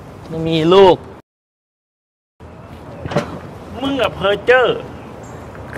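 A young man shouts with animation nearby.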